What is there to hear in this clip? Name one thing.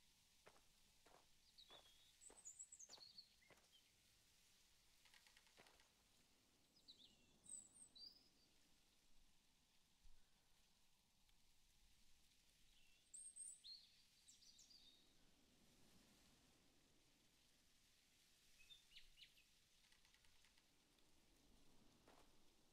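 A young man speaks quietly into a microphone.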